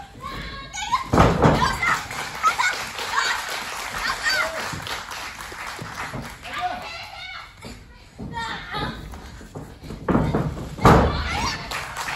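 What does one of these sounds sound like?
Wrestlers slam heavily onto a ring mat with a booming thud.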